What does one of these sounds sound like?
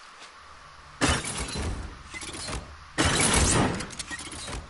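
Metal traps clank loudly against a wall.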